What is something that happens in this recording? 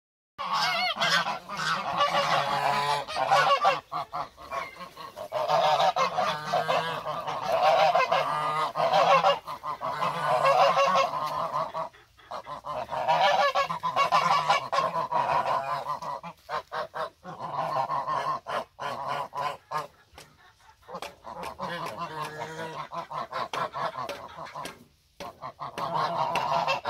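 Geese honk loudly and repeatedly close by.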